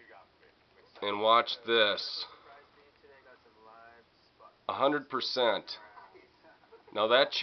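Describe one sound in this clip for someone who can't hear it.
A middle-aged man speaks with animation through a television speaker.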